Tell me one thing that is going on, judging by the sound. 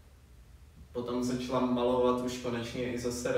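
A woman speaks calmly in a quiet, echoing room.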